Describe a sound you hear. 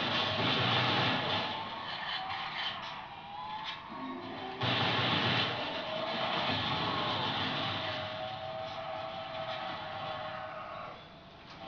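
Gunshots pop from a video game through a television speaker.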